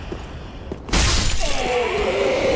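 A sword slashes through the air with a loud whoosh.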